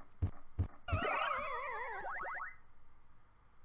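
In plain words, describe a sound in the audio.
A warbling electronic game tone plays and fades.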